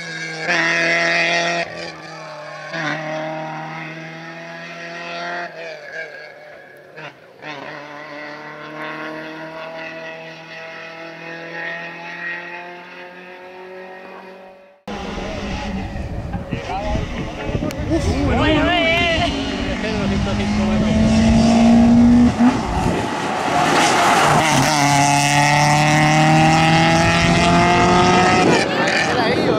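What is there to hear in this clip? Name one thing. A four-cylinder petrol rally car revs hard through the gears, climbing in pitch and dropping at each shift.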